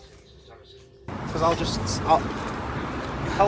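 A young man talks outdoors amid street noise.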